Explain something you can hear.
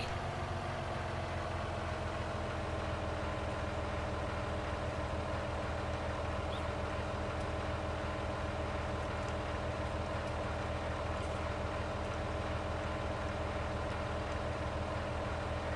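A hydraulic motor whines steadily.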